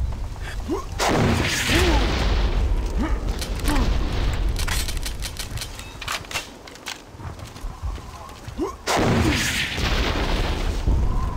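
Explosions boom loudly in a video game.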